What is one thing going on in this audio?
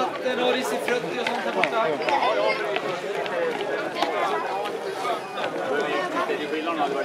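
A crowd of men and women chatter and cheer outdoors.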